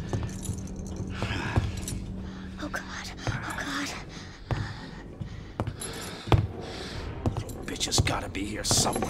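An elderly man mutters anxiously to himself.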